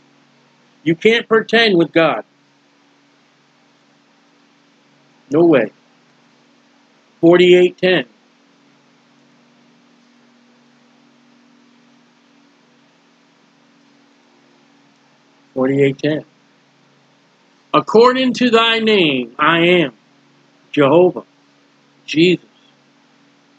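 A middle-aged man speaks calmly in short bursts over a microphone, with pauses between.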